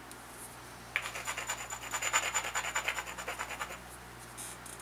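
A stone rubs and scrapes along the edge of a flint.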